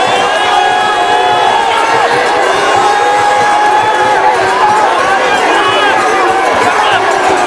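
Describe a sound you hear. Many men chant a rhythmic boat song in chorus.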